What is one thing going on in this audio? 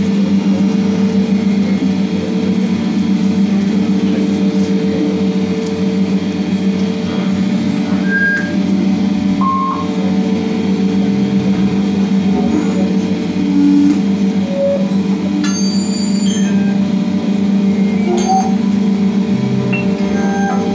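An electric guitar plays loudly through loudspeakers.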